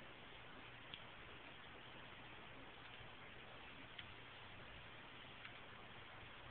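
Laptop keys click a few times as a hand presses them.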